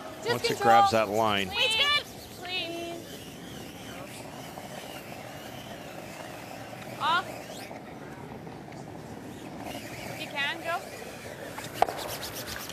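Brooms scrub rapidly against the ice.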